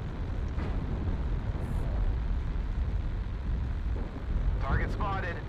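Pulse lasers fire in a video game.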